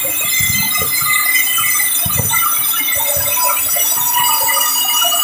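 A band sawmill cuts through a large log.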